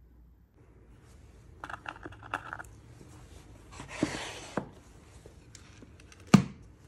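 Metal jewellery clinks in a wooden box.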